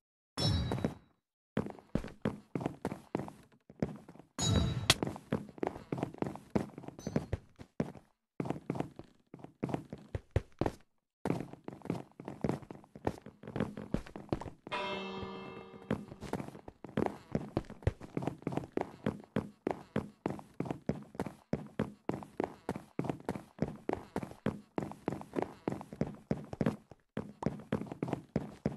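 Footsteps patter quickly across a wooden floor.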